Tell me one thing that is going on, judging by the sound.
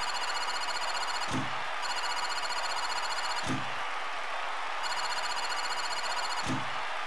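Rapid electronic ticking runs on steadily.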